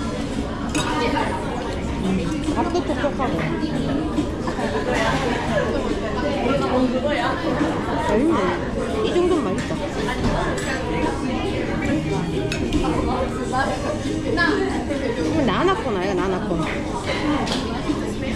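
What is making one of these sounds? Several people talk and chatter nearby.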